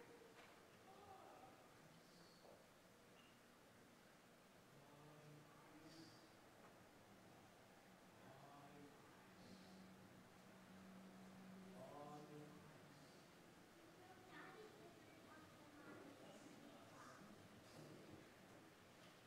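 A man speaks softly and slowly, as if praying aloud, in an echoing room.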